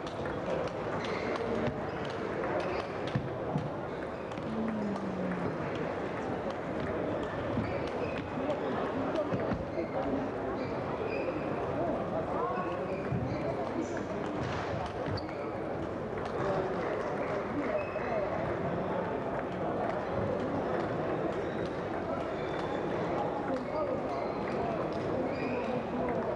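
A crowd of men and women chatters steadily all around.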